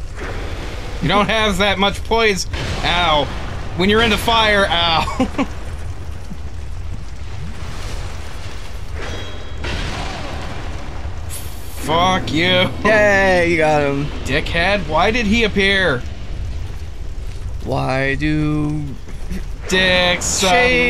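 A second man answers and laughs, close to a microphone.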